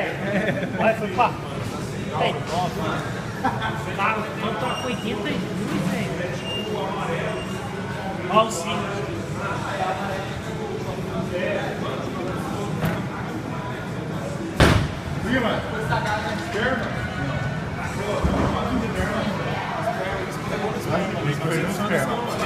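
Young men chatter nearby in a large echoing hall.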